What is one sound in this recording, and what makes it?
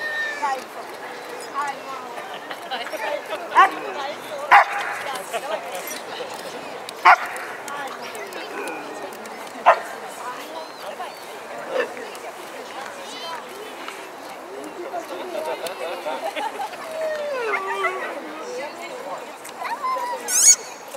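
People chatter in the background outdoors.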